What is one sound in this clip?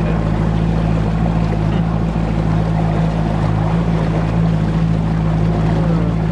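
Water rushes past a moving boat's hull.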